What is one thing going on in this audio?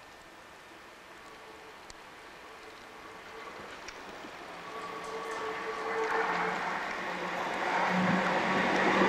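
A tram rumbles and squeals along the rails, growing louder as it approaches.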